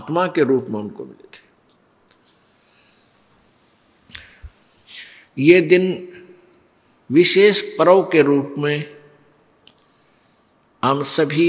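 An elderly man speaks calmly and with pauses into a close microphone.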